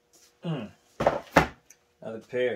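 A cardboard box thumps down onto a table.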